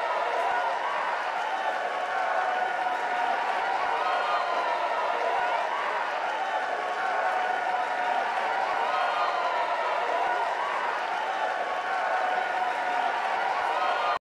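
A large stadium crowd cheers and murmurs steadily.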